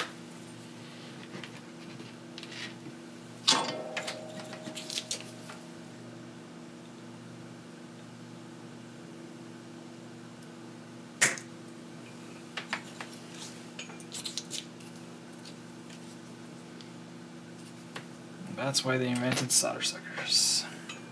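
Small metal parts clink and click on a workbench.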